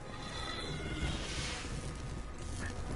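An energy explosion booms with a whoosh.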